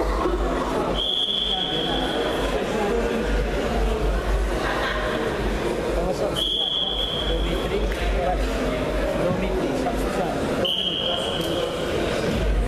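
A referee blows short, sharp whistle blasts.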